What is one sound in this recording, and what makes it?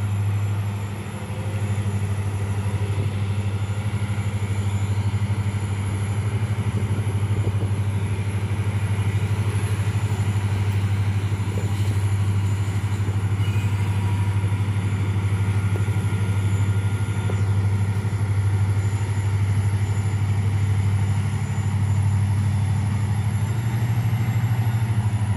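A diesel locomotive engine rumbles steadily in the distance.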